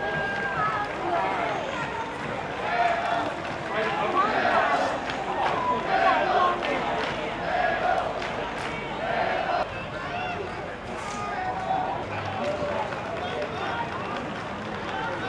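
Many men talk and call out together outdoors in a large stadium.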